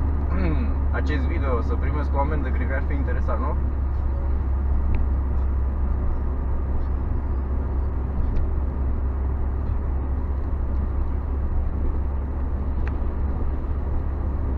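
A car engine hums low and steady while driving.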